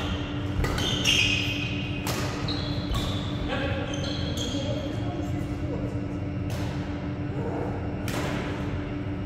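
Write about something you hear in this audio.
Shuttlecocks are struck with sharp pops of badminton rackets in a large echoing hall.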